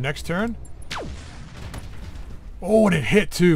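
A laser weapon fires with a buzzing zap.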